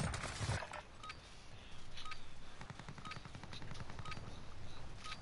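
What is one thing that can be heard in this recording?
A short electronic beep sounds once every second, counting down.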